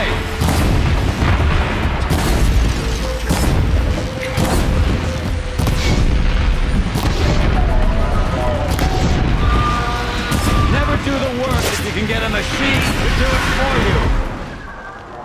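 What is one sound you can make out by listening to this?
Fiery explosions boom and crackle in quick bursts.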